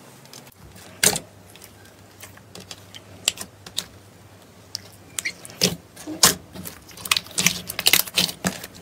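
Sticky slime squelches and crackles as fingers stretch and squeeze it.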